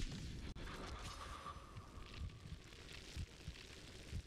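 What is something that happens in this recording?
Glass shatters with a sharp crash.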